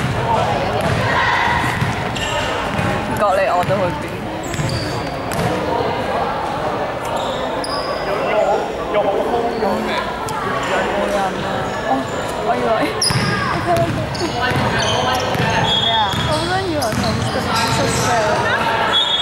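Sneakers squeak sharply on a hardwood court in a large echoing hall.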